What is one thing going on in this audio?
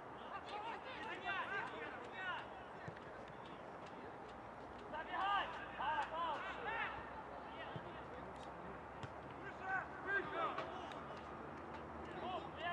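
Footballers shout to each other across an open pitch.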